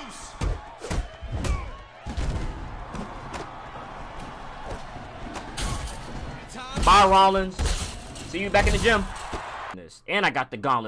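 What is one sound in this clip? Punches and kicks thud in a video game.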